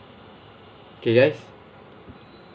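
A young man speaks a short, loud phrase close by.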